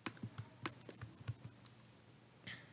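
Soft game hit sounds tap in quick succession.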